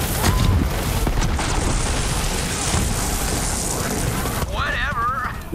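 A sci-fi gun fires with a loud, rushing roar.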